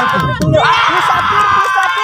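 A man shouts excitedly.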